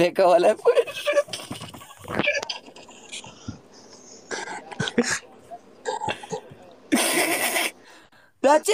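A young man laughs heartily close to a microphone.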